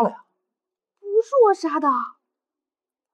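A young woman answers.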